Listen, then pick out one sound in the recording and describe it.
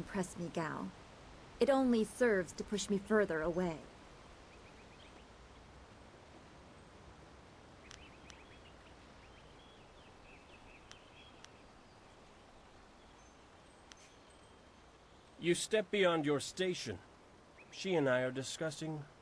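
A young man talks calmly into a microphone, close by.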